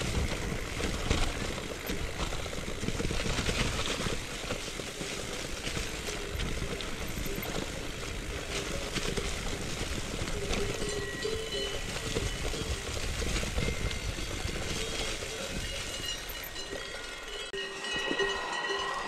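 Bicycle tyres rumble over grass.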